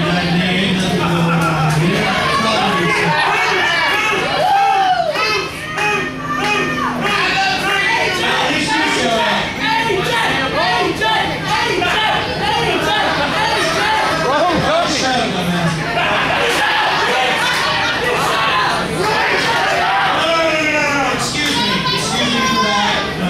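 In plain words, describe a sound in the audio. A man talks loudly into a microphone over a loudspeaker in a large echoing hall.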